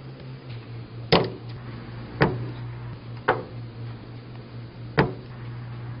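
Small objects knock against a hard table top.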